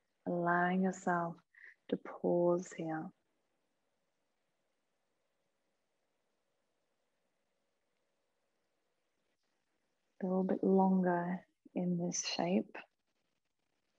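A woman speaks calmly and softly, close to a microphone, with long pauses.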